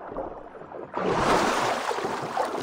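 Water splashes loudly as a swimmer breaks the surface.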